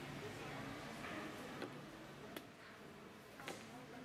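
A wooden chess piece clicks down onto a board.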